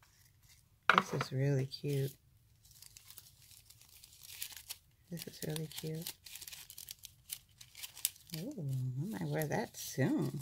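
Plastic sheets crinkle as they are handled.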